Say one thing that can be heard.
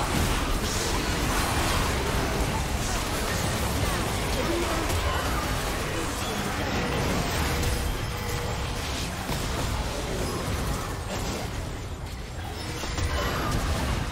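Spell effects crackle and burst during a fight.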